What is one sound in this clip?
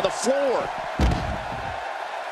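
A body slams heavily onto the floor with a thud.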